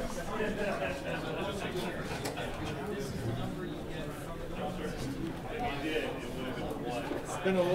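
Small plastic pieces click and tap on a table.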